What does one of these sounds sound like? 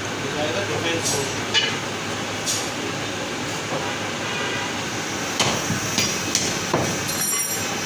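A cleaver chops meat on a wooden block with sharp thuds.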